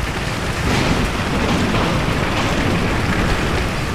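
Heavy rain pours down outdoors.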